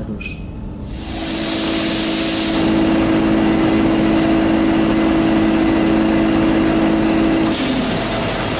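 An electric locomotive hums steadily.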